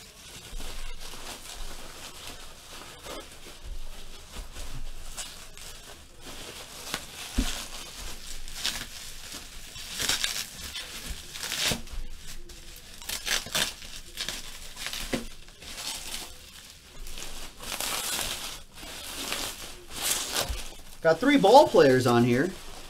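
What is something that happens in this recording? Plastic bubble wrap crinkles and rustles as hands handle it.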